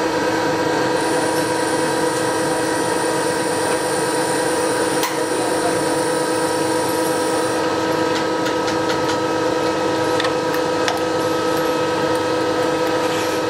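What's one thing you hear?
Coolant splashes and sprays over the metal.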